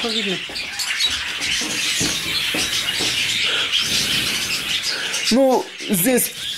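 A chick cheeps loudly up close.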